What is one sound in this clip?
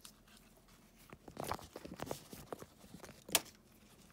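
Plastic parts knock and scrape as they are handled.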